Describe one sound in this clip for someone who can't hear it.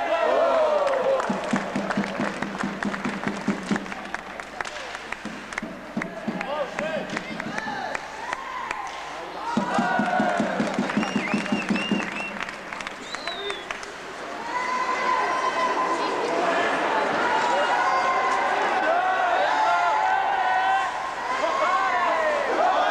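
A crowd of spectators shouts and cheers in an echoing rink.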